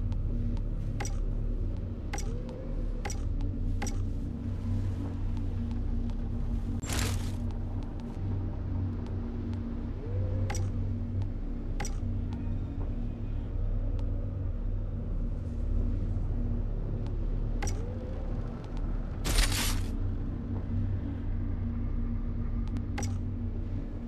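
Game menu clicks tick now and then.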